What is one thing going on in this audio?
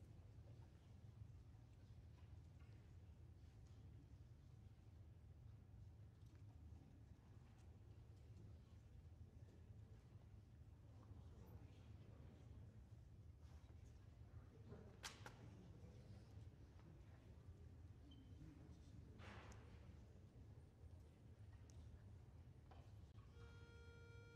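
An audience murmurs quietly in a large hall.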